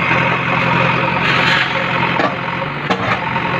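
Rubble clatters and thuds to the ground.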